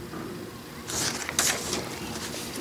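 Paper pages rustle as they are handled.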